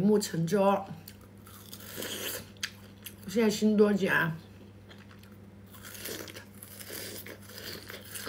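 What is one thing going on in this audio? A young woman bites and chews food.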